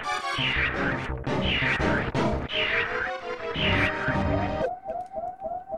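Video game music plays loudly, then cuts off.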